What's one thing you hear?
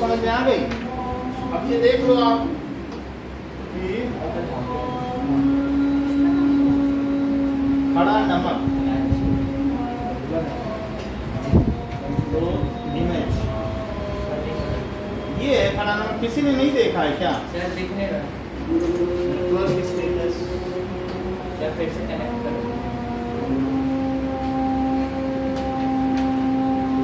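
A man speaks nearby in a steady, explaining tone.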